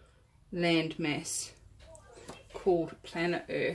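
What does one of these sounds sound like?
A glass jar is set down on a table.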